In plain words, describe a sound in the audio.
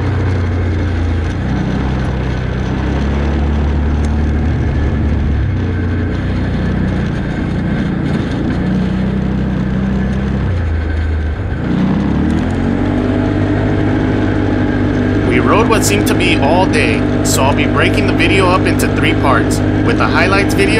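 An engine hums steadily and then revs up loudly.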